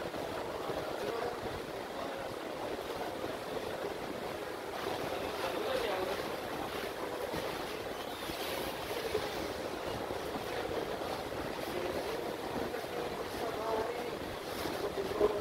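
Video game sound effects play through a phone speaker.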